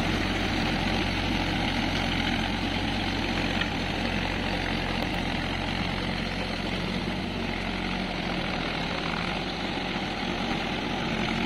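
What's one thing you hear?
A tractor engine rumbles steadily in the distance, slowly fading as it drives away.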